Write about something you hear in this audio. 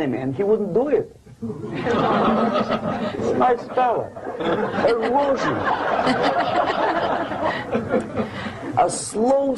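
An older man lectures with animation through a microphone.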